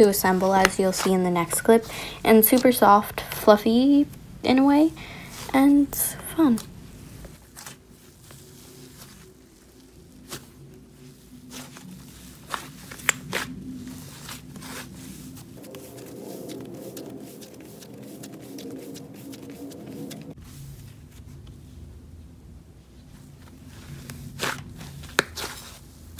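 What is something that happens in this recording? Soft putty squishes and squelches between hands.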